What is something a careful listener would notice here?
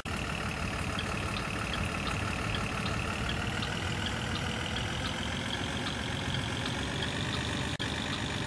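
A turn signal ticks in an even rhythm.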